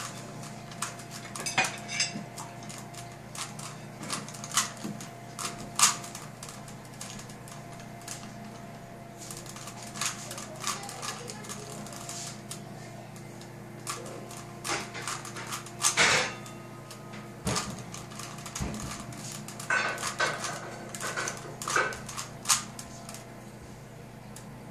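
A puzzle cube clicks and clatters as its layers are turned quickly.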